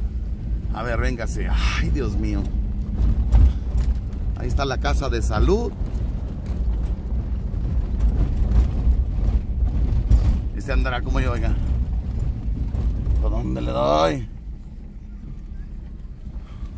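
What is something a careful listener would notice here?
Tyres roll and crunch over a dirt road.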